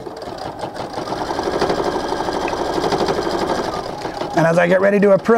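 A sewing machine stitches rapidly with a steady whirring hum.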